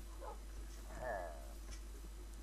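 A sheep bleats nearby.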